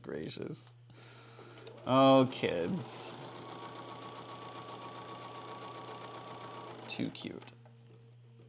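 A sewing machine motor whirs steadily as it stitches.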